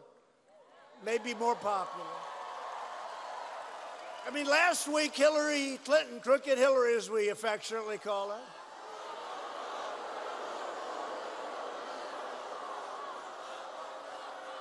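A large crowd cheers and murmurs in a big hall.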